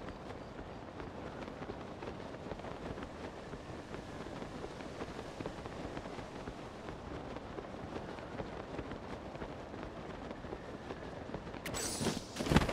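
Wind rushes steadily past during a glide.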